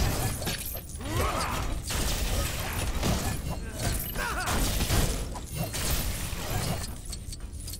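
Small objects clatter and shatter as they break apart.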